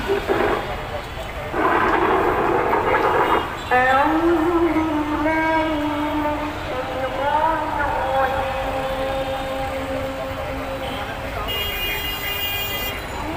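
Traffic rumbles and hums along a busy street.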